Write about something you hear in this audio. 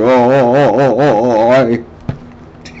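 A man sings loudly close by, his voice wavering up and down.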